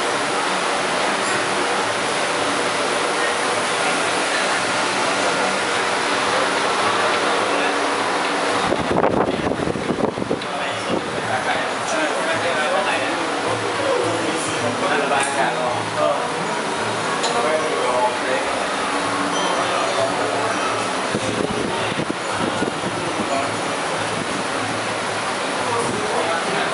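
A steady murmur of distant voices and activity fills a large room.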